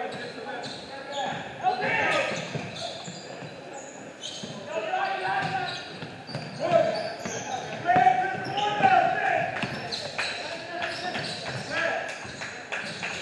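Sneakers squeak sharply on a hard court in a large echoing gym.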